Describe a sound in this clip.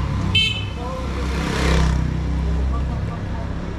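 A motorcycle engine hums as it passes close by.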